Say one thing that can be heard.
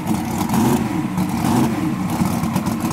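A race car engine revs briefly up and down.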